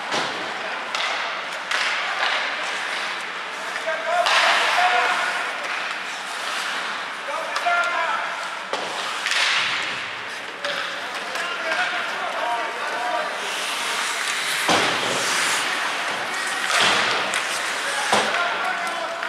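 Hockey sticks clack sharply against a puck in a large echoing hall.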